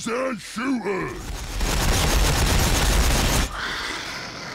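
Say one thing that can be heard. Rapid gunfire rattles in a loud burst.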